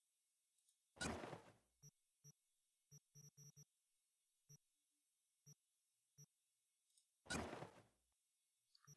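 A whooshing swish sounds as a menu panel opens or closes.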